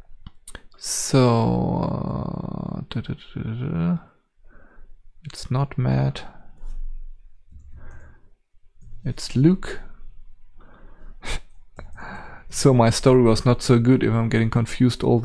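An elderly man talks calmly into a close microphone.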